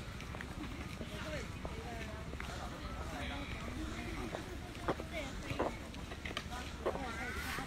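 Footsteps tap on asphalt pavement.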